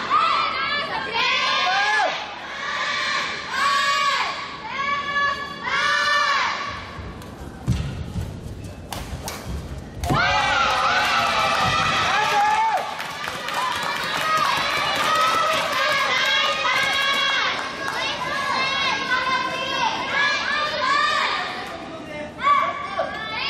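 Sneakers squeak sharply on a court floor in a large echoing hall.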